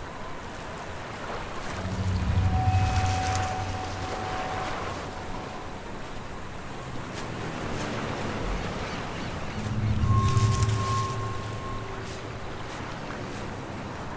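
Dry grass rustles as someone creeps through it.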